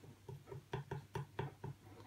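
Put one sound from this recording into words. Liquid pours from a cup into a model volcano.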